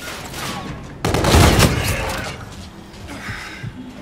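Gunshots fire in rapid bursts close by.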